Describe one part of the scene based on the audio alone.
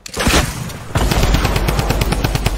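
Gunshots fire rapidly in quick bursts.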